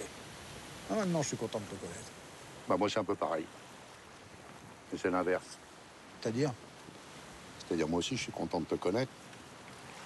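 A middle-aged man speaks with animation nearby.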